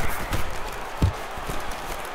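A ball is kicked with a dull thump.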